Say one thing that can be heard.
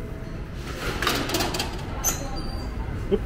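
A metal gate clanks and rattles.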